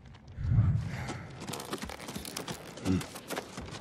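Feet and hands knock on a wooden ladder while climbing.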